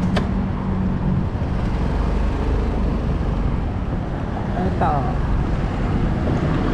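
A scooter engine hums steadily up close.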